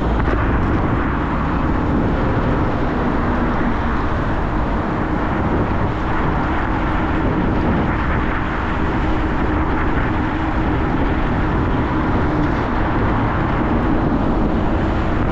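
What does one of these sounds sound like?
Wind rushes loudly past a fast-moving motorbike.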